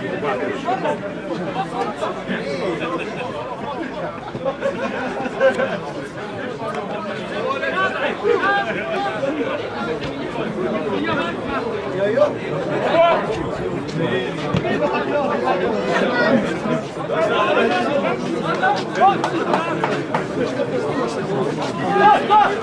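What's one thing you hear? Spectators chatter nearby outdoors.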